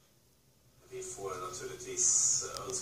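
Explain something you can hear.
A man speaks with animation through a microphone, heard from a television.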